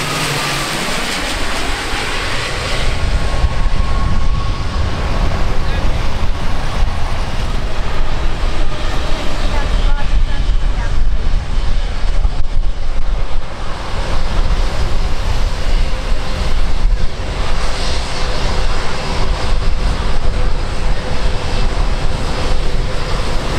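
Wind buffets the outdoors recording with a low rumble.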